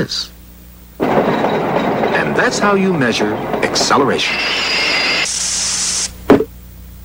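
A steam train chugs and puffs steam.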